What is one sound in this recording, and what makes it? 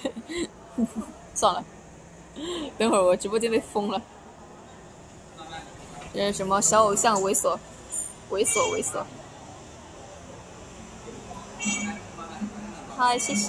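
A young woman talks close to a phone's microphone in a light, playful voice.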